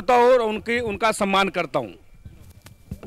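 A man's voice sings out loudly through loudspeakers outdoors.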